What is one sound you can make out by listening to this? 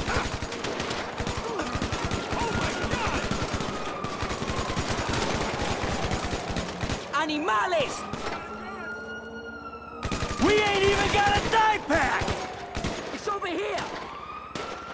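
Gunshots crack rapidly, one after another.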